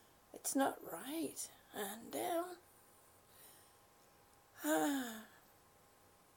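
A middle-aged woman speaks calmly and close to a microphone, in short phrases.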